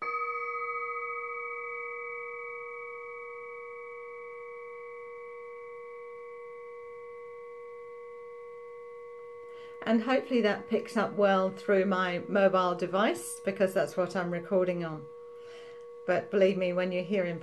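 A crystal triangle rings with a clear, sustained tone that slowly fades.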